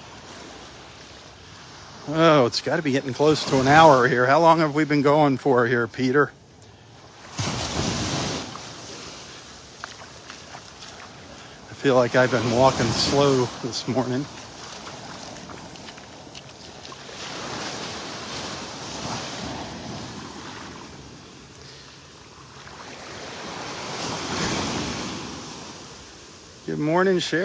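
Small waves wash and break gently on a sandy shore.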